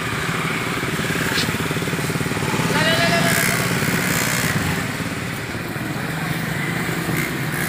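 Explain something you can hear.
Men and women chatter in the background outdoors.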